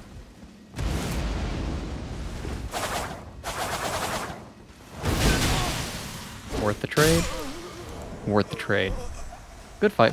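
Swords clash and slash with sharp metallic ringing.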